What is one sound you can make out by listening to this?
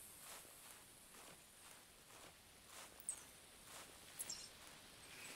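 Footsteps swish through forest undergrowth at a steady walking pace.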